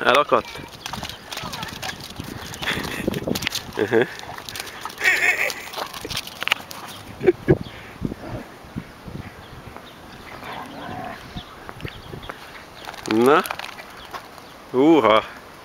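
Two dogs scuffle and tug over a stick.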